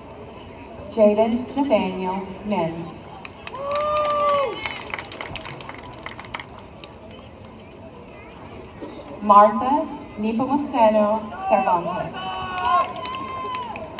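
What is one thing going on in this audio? A man speaks through a loudspeaker in an open outdoor space.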